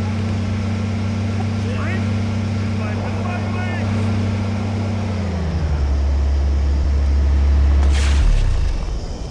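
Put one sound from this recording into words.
A jeep engine rumbles steadily.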